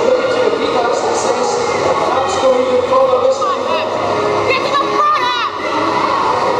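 A crowd of women chatter and call out in a large echoing hall.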